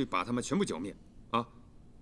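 A man speaks firmly and close by.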